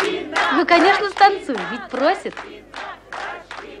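A group of young people clap their hands.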